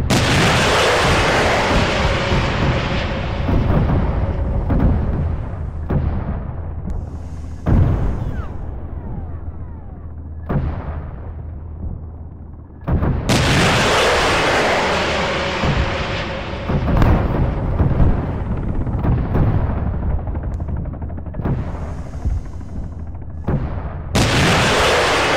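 Heavy explosions boom in quick succession and rumble away.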